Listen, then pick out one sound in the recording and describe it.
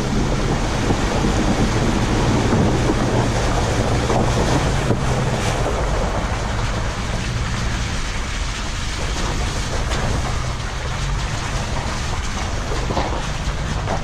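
A car engine hums steadily at low speed.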